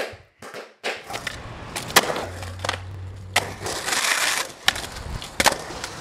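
Skateboard wheels roll and rumble on a concrete ramp.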